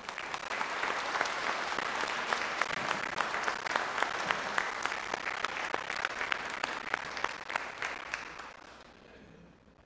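A crowd applauds in a large echoing hall.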